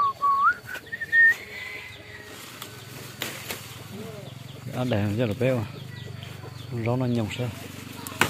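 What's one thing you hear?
Leaves rustle as a hand brushes through them.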